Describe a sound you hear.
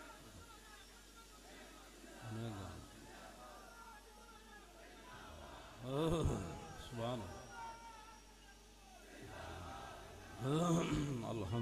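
An elderly man speaks forcefully into a microphone, heard through loudspeakers.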